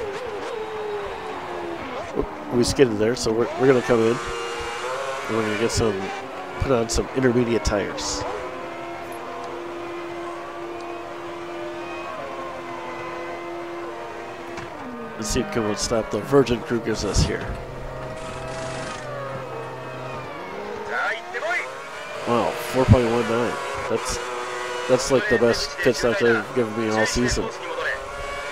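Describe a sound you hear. A racing car engine whines and revs up and down through gear changes.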